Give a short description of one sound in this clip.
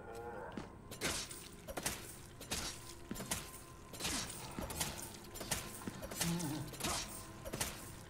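Heavy blows thud repeatedly against a body on the floor.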